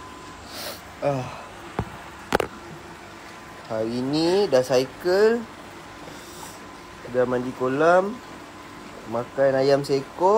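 A young man talks casually close to a phone microphone.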